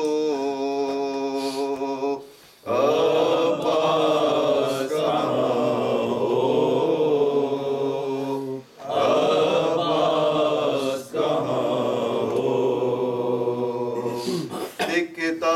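A group of men chant together in unison, close by.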